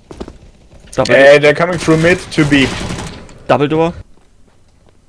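A gun fires several rapid shots.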